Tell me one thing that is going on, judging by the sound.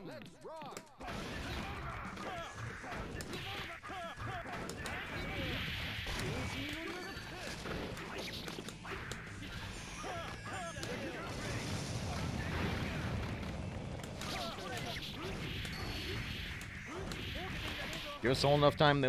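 Blows and slashes clash rapidly in a fight.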